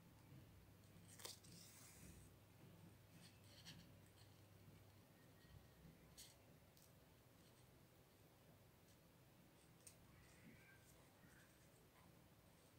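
Satin ribbon rustles softly as fingers fold it.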